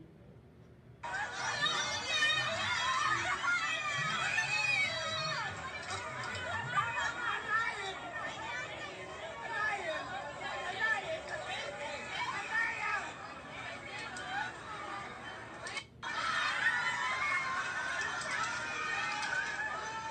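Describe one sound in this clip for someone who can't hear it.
A crowd of young people talks and shouts excitedly, heard through a small speaker.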